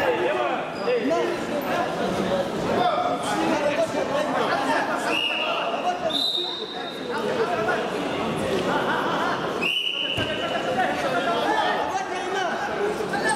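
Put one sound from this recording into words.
A crowd talks and calls out in a large echoing hall.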